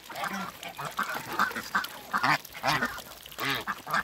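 A duck splashes in water.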